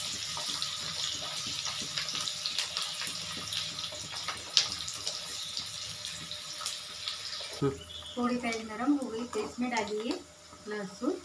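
A wooden spatula scrapes and taps against a metal pan.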